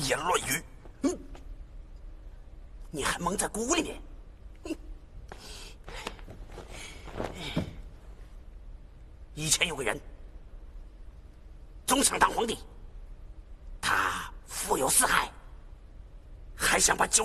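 A man speaks angrily and forcefully, close by.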